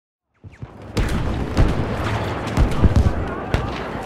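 Rifle shots crack loudly outdoors.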